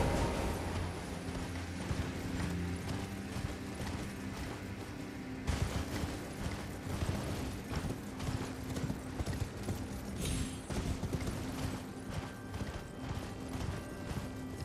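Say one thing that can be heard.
A horse's hooves pound at a gallop.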